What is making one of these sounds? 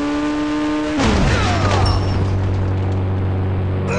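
A car crashes into a person with a loud thud.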